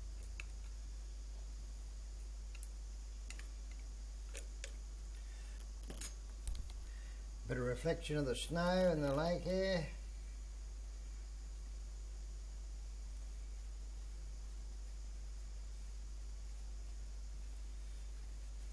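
A paintbrush dabs and scrapes on canvas.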